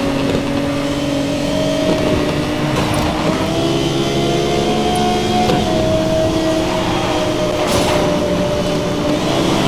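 A sports car engine roars at high speed, its pitch rising steadily.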